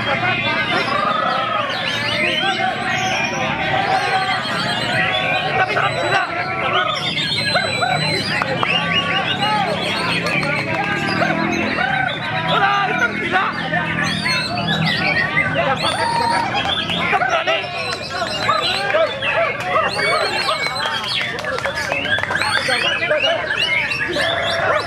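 A white-rumped shama sings a varied, rich song.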